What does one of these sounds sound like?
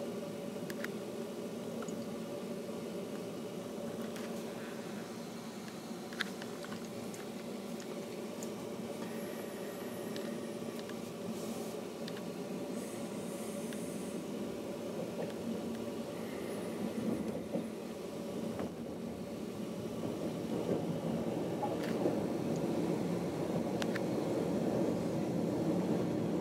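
A train rumbles steadily along the tracks, growing louder toward the end.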